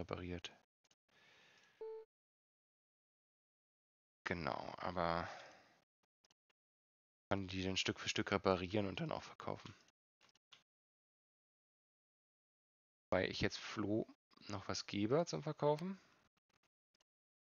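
A man talks with animation close to a microphone, in short bursts with pauses.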